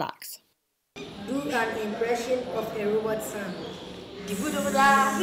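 A teenage boy speaks nearby.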